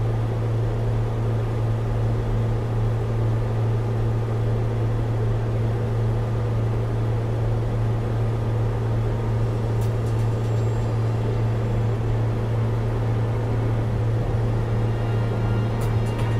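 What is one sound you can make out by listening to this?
A small propeller plane's engine drones steadily at cruise.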